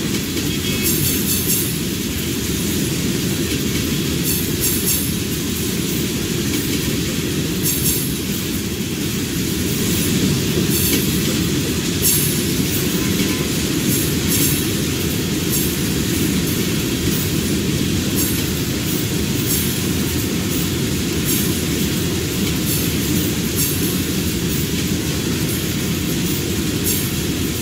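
Train wheels click rhythmically over rail joints.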